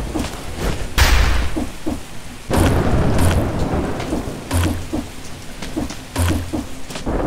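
A game character lands with heavy thuds.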